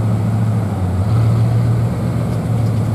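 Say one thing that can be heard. A sports car engine revs up briefly.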